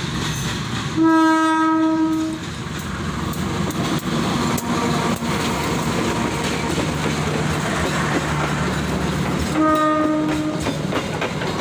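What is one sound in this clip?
A diesel-electric locomotive's horn sounds two blasts.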